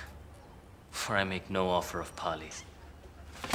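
A young man speaks calmly and firmly close by.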